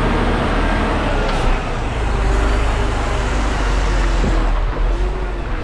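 A heavy truck engine rumbles loudly close by as it passes.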